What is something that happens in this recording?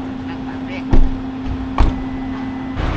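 A car door thumps.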